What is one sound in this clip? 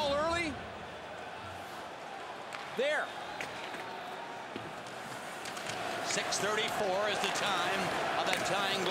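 Hockey sticks clack against a puck and each other.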